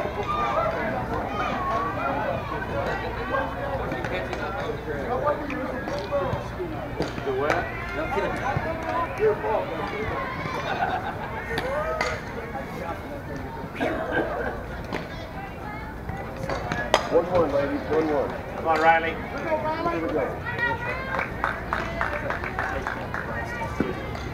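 Young women shout and cheer across an open field.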